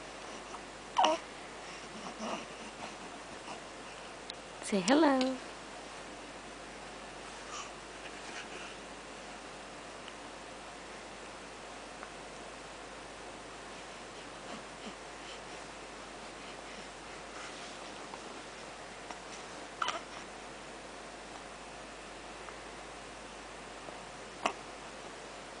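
A baby coos and squeals close by.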